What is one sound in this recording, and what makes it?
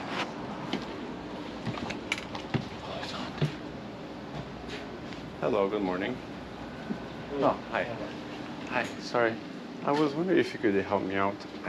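Clothing rustles close by.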